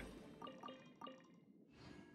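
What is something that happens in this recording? Short bright chimes ring in quick succession.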